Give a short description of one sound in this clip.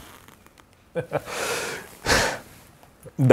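A middle-aged man chuckles briefly.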